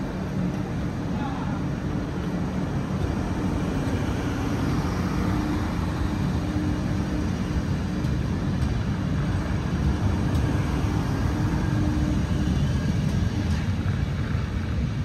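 A train's engine hums steadily.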